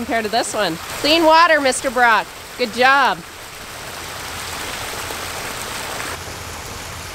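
Water trickles and splashes out of a pipe.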